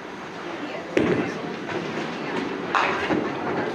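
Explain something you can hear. A bowling ball thuds onto a wooden lane and rolls away with a rumble.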